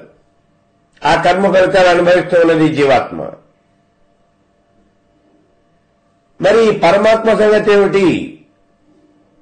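An elderly man speaks calmly and clearly into a close microphone, in two short phrases with a pause between.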